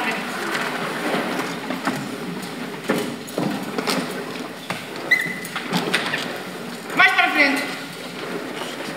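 Young people talk and call out.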